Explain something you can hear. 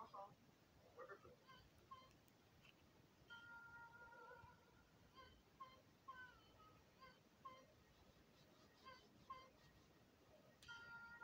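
Short electronic game menu blips sound as buttons are tapped.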